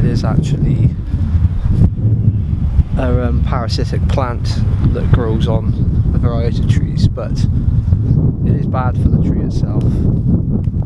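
A young man talks calmly and close up.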